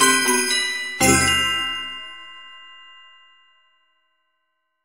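A synthesized ensemble ends on a loud final chord that rings out and fades away.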